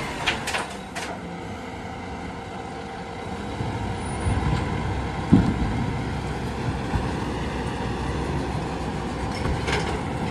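A truck engine hums in the distance.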